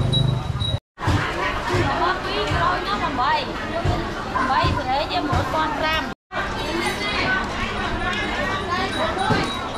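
A crowd of men and women chatters in a large, echoing market hall.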